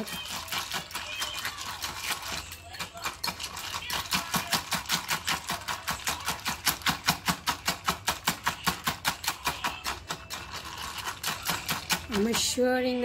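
A whisk beats rapidly against a bowl.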